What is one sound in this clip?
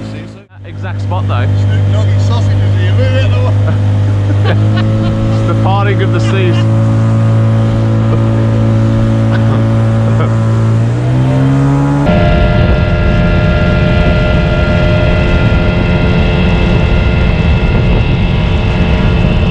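An outboard motor drones steadily, then revs higher.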